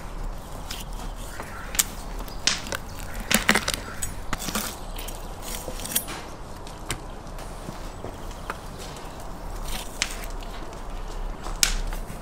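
A knife cuts through raw meat.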